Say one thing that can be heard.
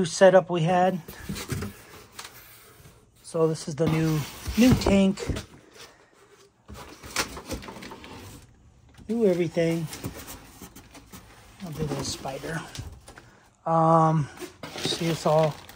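Cardboard box flaps rustle and scrape.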